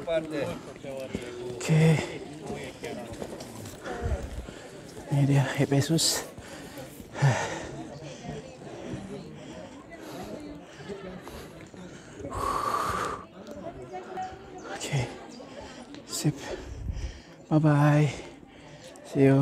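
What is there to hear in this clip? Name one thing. A young man talks close to a microphone, outdoors.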